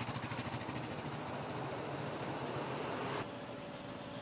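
A motorcycle engine hums close by.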